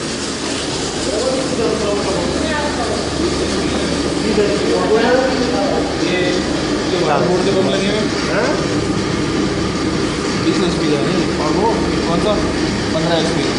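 Men talk loudly over machine noise.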